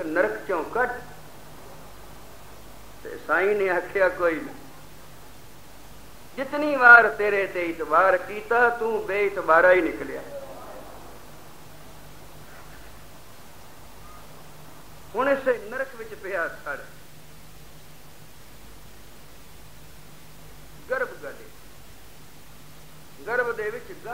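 An elderly man speaks calmly in short bursts with long pauses.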